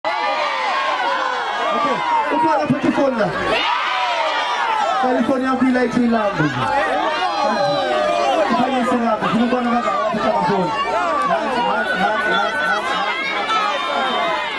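A large crowd cheers and sings along loudly outdoors.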